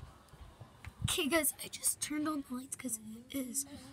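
A young girl talks close by, with animation.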